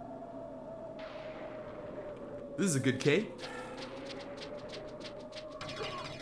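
Sword slashes whoosh during a fight with creatures.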